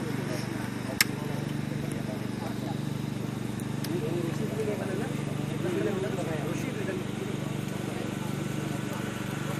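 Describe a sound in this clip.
Several men talk among themselves nearby.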